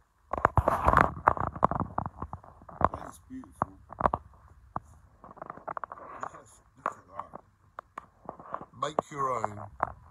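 A wood fire crackles in a stove.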